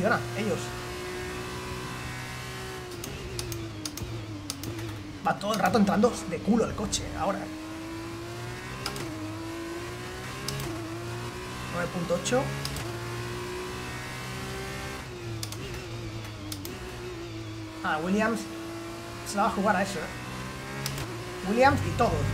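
A racing car engine whines steadily, rising and falling in pitch as it shifts gears.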